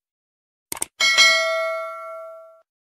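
A bell chimes and rings out.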